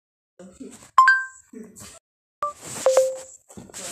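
A phone gives a short electronic chime.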